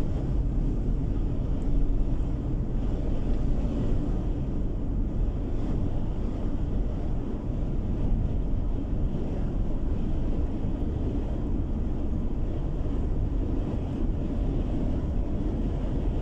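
Tyres roll steadily on smooth pavement.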